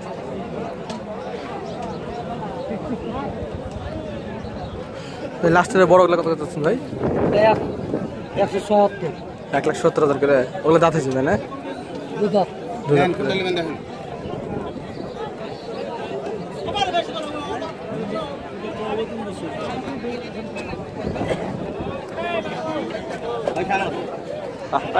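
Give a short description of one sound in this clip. A crowd of people murmurs and chatters outdoors in the background.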